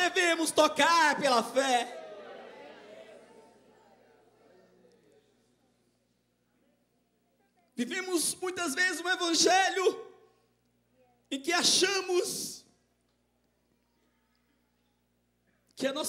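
A man speaks with feeling through a microphone and loudspeakers in a large echoing hall.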